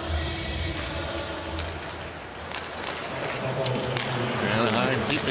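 Sticks clack against a puck on ice.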